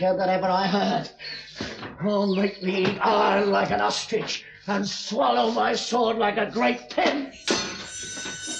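A man speaks loudly and tensely.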